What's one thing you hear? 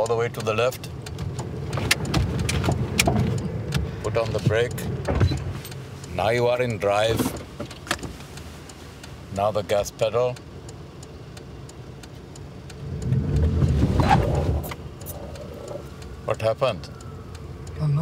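A middle-aged man speaks calmly inside a car.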